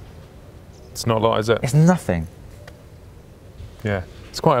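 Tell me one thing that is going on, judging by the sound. A man talks calmly and with animation, close to a microphone.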